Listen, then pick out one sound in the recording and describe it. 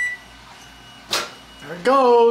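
A microwave door clicks open.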